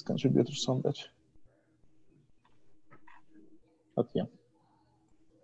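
A young man speaks calmly through a computer microphone, as on an online call.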